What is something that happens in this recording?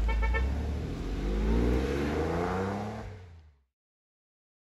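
A car engine revs up, rising in pitch, then fades into the distance.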